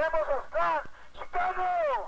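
A man shouts through a megaphone.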